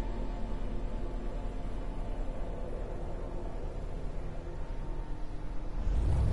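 A spaceship engine hums with a low steady rumble.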